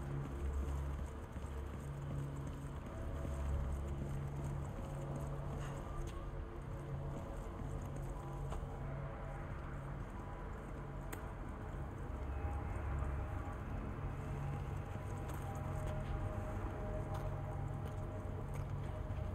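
Footsteps crunch slowly on a gritty floor.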